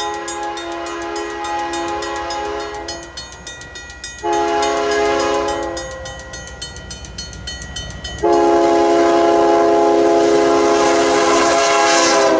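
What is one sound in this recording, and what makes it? A train horn blows loud, long blasts.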